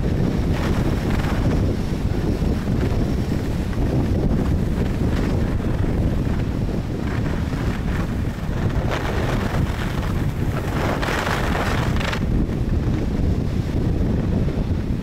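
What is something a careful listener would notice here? Skis hiss and scrape over packed snow.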